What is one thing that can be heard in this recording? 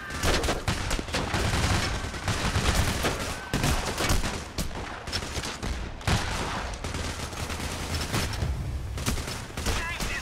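Gunfire from a game rattles in rapid bursts.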